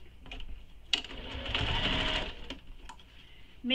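A sewing machine whirs as it stitches.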